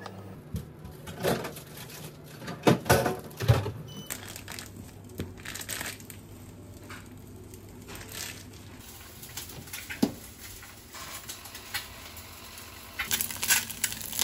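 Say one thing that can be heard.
Eggs sizzle in a frying pan.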